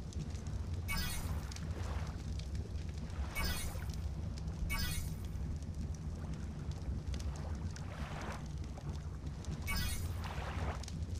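A bright electronic chime rings out several times.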